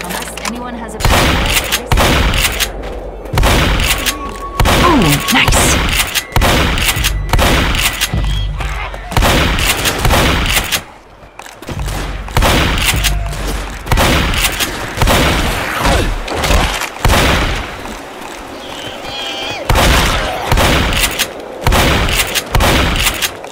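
Shotgun blasts boom again and again.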